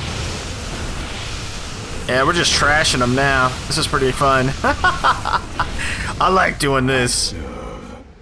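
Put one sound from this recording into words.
Laser weapons fire and explosions crackle in a sci-fi battle.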